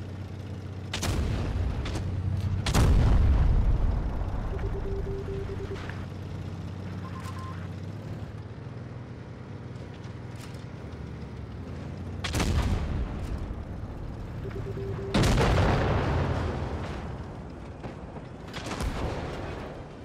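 Tank cannons fire with loud booming blasts.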